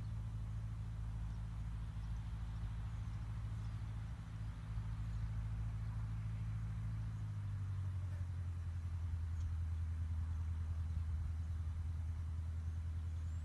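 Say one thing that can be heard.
A small plane's propeller engine drones steadily outdoors, changing pitch as the plane speeds along the ground.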